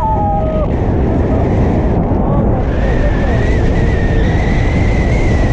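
Strong wind buffets loudly against a microphone.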